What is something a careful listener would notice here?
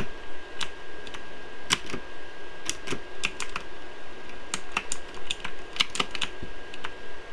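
Building pieces snap into place with quick clicks.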